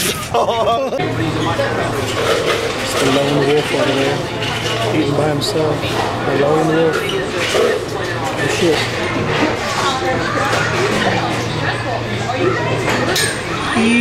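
People chatter in the background of a busy room.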